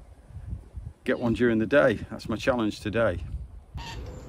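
An elderly man speaks calmly, close to the microphone.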